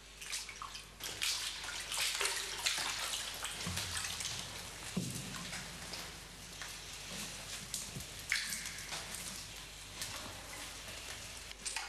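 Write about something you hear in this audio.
Straw rustles and crunches underfoot.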